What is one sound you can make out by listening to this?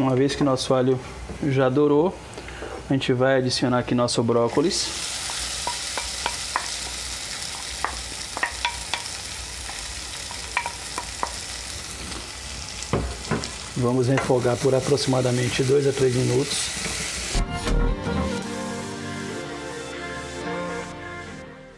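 A wooden spoon scrapes and knocks against a pan.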